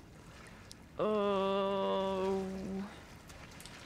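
A young woman makes a long, steady vocal sound close to a microphone.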